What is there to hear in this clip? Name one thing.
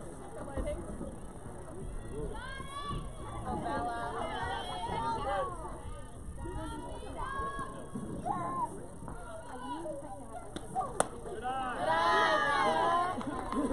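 Young women chant and cheer loudly outdoors.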